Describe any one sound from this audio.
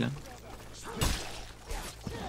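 Steel blades clash in a fight.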